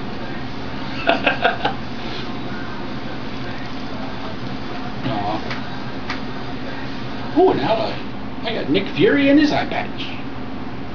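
A man talks close by, with a short chuckle.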